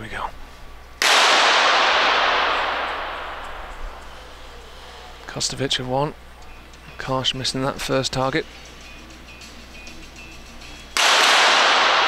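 An air pistol fires with a sharp crack.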